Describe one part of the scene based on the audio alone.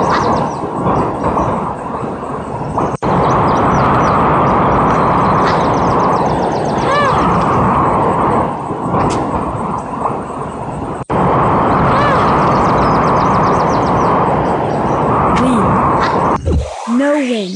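Strong wind gusts and roars steadily.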